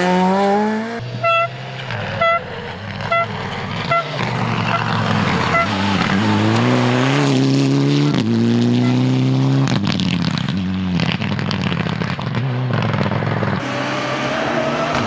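Rally car engines rev and whine as they accelerate along a road in the distance.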